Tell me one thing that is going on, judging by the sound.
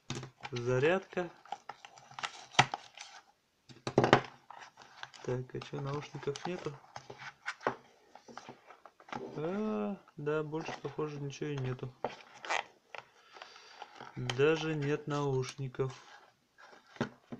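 Cardboard packaging scrapes and clicks as hands handle it.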